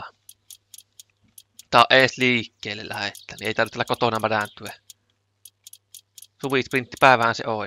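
A wrench ratchets with quick, light clicks.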